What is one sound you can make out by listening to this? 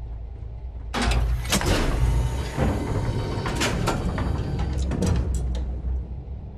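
A heavy metal door grinds and hisses open.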